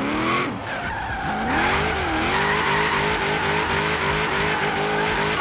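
Tyres screech on asphalt during a slide.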